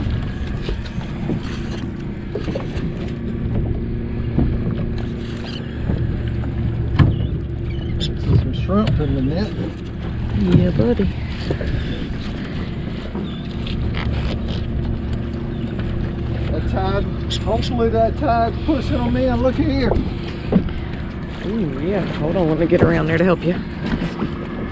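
A boat engine idles with a steady low hum.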